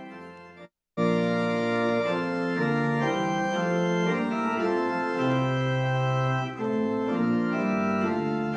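A choir sings loudly.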